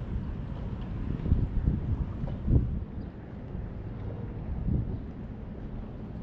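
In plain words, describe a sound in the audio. Small waves lap gently on the water.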